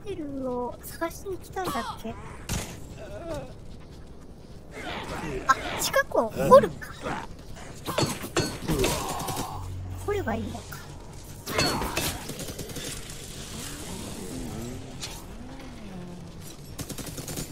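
Creatures shriek and howl.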